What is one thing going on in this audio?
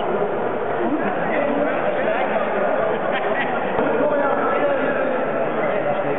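A crowd of men chatter and call out in a large echoing hall.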